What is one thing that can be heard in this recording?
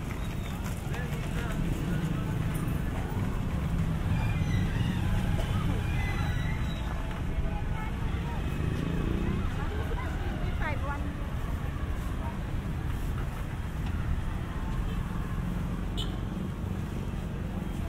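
Motor traffic rumbles steadily along a busy street outdoors.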